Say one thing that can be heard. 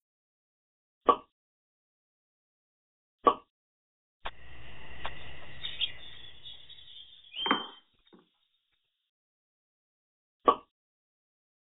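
Short electronic click sounds play now and then.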